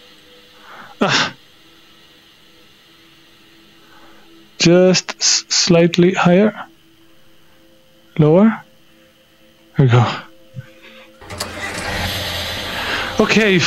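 A young man talks animatedly into a close microphone, in short bursts.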